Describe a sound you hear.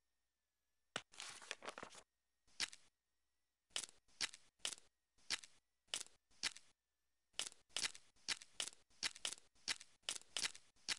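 Puzzle pieces click softly into place, one after another.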